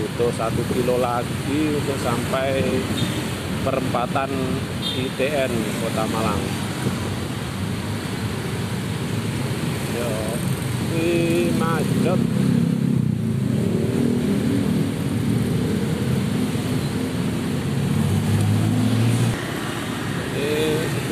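Many motorbike engines hum and putter close by in slow street traffic.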